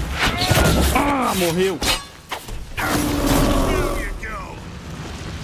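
A large beast roars and snarls.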